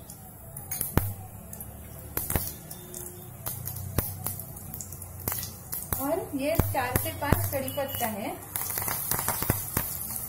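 Seeds crackle and pop in hot oil.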